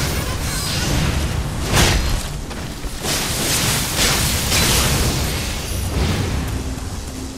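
Swords slash and strike with loud crashing impacts.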